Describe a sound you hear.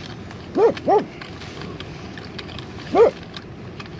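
A spoon stirs and scrapes inside a plastic cup.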